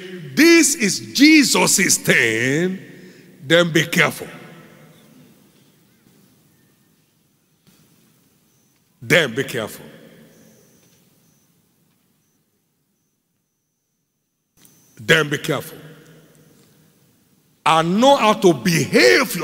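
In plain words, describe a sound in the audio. A man preaches forcefully into a microphone in a large echoing hall, with long pauses between bursts.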